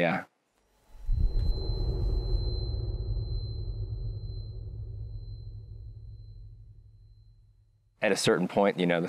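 A guitar chord rings out and slowly fades.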